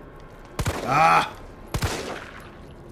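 A handgun fires sharp shots.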